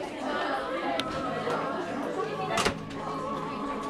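Footsteps walk along a hallway.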